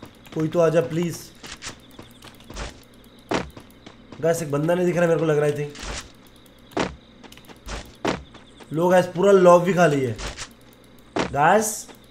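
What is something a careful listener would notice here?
A young man speaks with animation into a close microphone, in short bursts.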